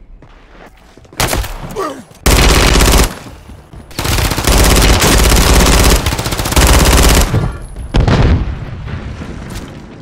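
Rapid gunfire rattles in bursts.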